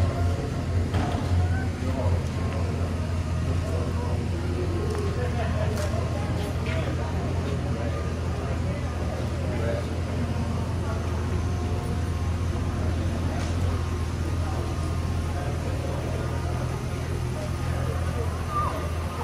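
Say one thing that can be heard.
Several men and women talk quietly nearby.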